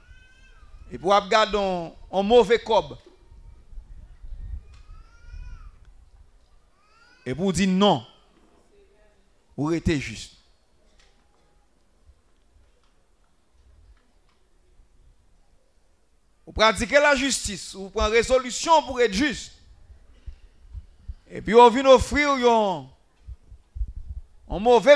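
A man sings into a microphone in short phrases with pauses.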